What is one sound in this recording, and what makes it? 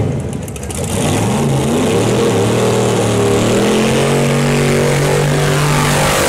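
A race car engine roars loudly, climbing in pitch.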